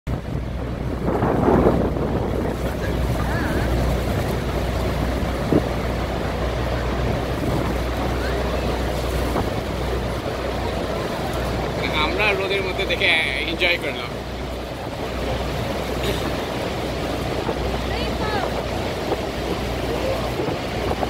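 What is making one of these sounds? Wind rumbles across the open water.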